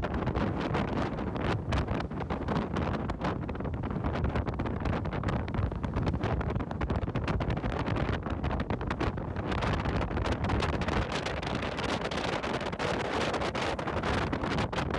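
Strong wind buffets and roars steadily outdoors over open water.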